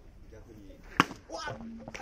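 A metal bat cracks sharply against a ball.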